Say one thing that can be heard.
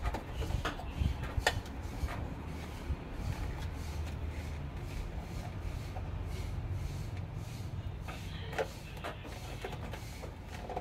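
Plastic parts clatter and click as a printer is handled.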